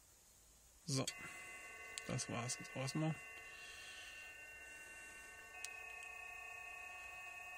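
Several steady electronic tones hum from a laptop speaker.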